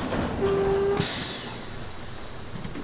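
Bus doors hiss and clatter open.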